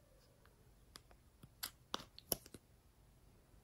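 A plastic lid clicks and snaps off a small tub.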